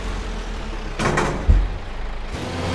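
A loud explosion booms once.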